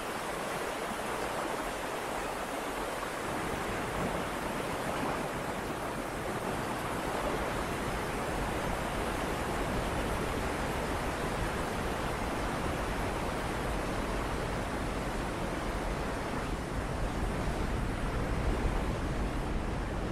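White-water rapids rush and roar loudly.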